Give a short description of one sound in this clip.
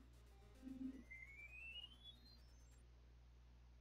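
A high electronic tone sweeps quickly upward.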